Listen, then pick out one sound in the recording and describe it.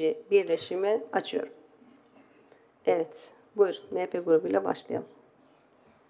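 A woman speaks calmly into a microphone, reading out.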